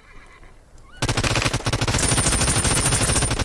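A gun fires in a rapid, rattling burst.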